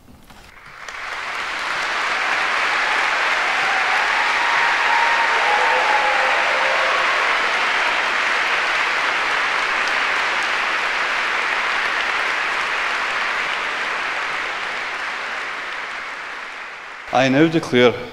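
An audience applauds steadily in a large hall, then the applause fades away.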